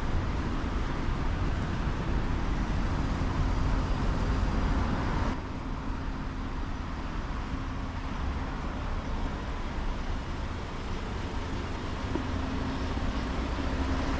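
A truck's engine idles and rumbles nearby.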